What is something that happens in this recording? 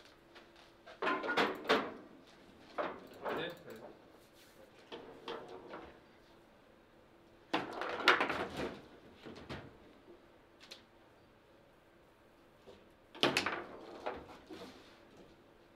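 Table football rods rattle and clack as players spin them.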